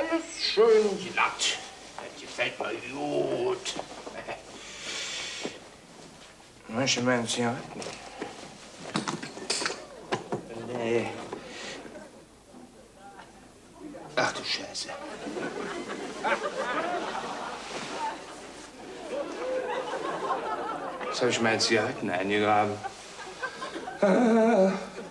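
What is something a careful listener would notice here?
A middle-aged man speaks with animation.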